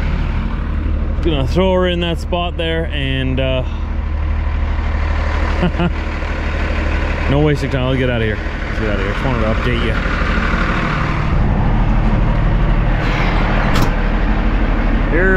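A truck's diesel engine idles with a low, steady rumble.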